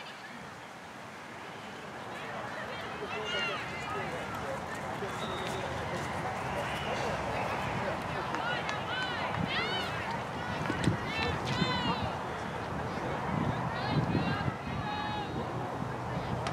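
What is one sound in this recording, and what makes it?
Players and spectators shout and call out in the distance outdoors.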